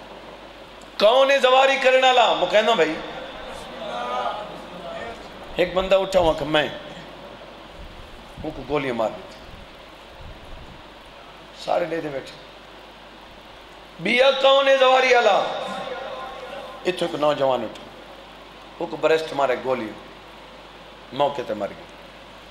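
A man speaks forcefully in bursts through a microphone and loudspeakers, with pauses between phrases.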